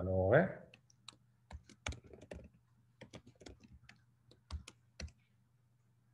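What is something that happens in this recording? Computer keys click rapidly as someone types.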